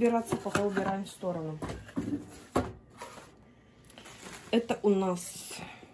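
Plastic bubble wrap crinkles and rustles.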